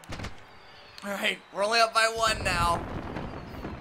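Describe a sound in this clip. A young man shouts excitedly close to a microphone.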